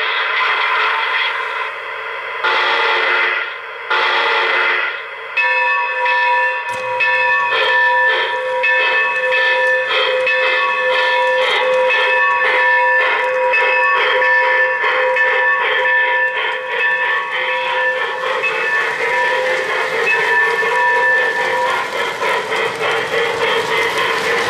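A model train clicks and rattles along the track.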